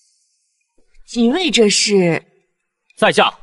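A young man speaks with a raised voice, close by.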